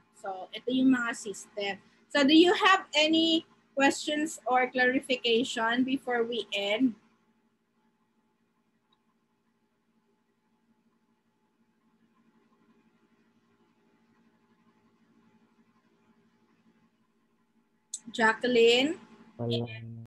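A young woman speaks calmly over an online call.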